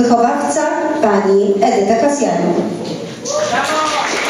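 An older woman speaks calmly through a microphone in a large echoing hall.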